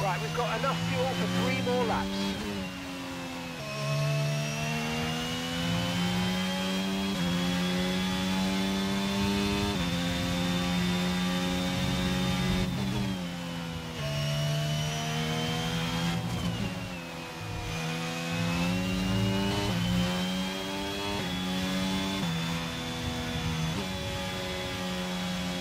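A racing car engine screams at high revs, rising through the gears and dropping as it slows for corners.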